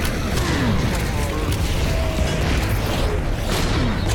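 Monsters growl and snarl.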